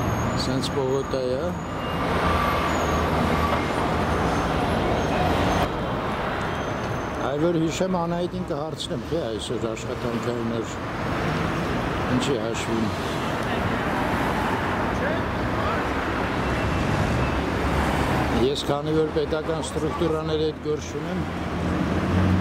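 Traffic rumbles steadily along a nearby street.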